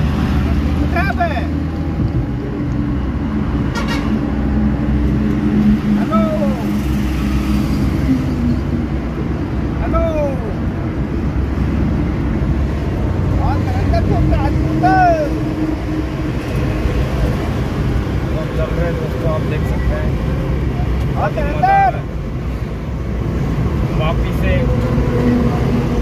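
Tyres roar on asphalt, heard from inside a moving minivan.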